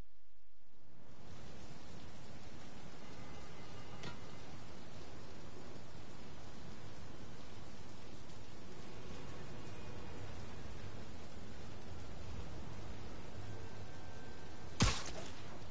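Steady rain and distant city traffic hiss.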